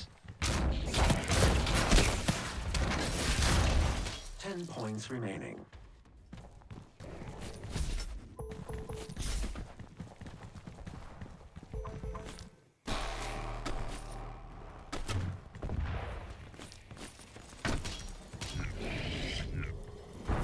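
Heavy gunfire blasts in rapid bursts.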